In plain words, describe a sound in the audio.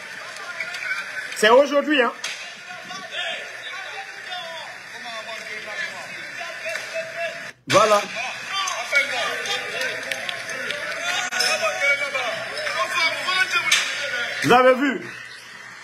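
A crowd shouts through a phone's loudspeaker.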